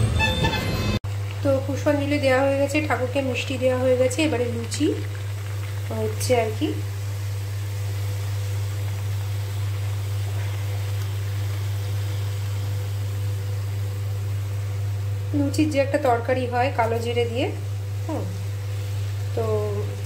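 Oil sizzles and bubbles in a frying pan.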